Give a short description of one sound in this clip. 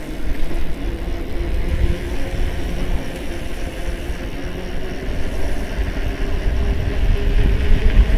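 An electric bike motor hums steadily.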